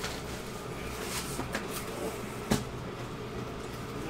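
A box lid flaps open with a soft thump.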